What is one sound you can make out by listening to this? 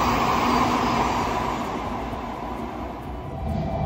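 A train rushes past with a loud roar.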